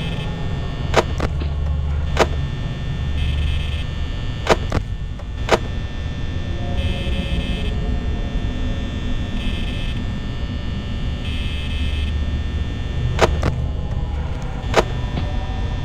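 Buttons click sharply now and then.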